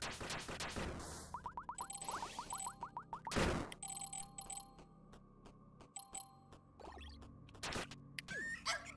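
Sharp electronic game sound effects zap and crash.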